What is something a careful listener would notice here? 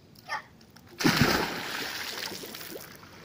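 A boy jumps into a pool with a loud splash.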